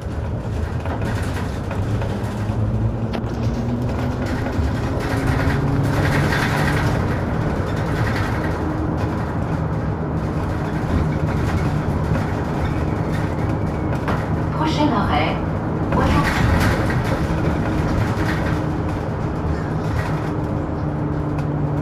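A bus engine hums steadily and changes pitch as the bus speeds up and slows down.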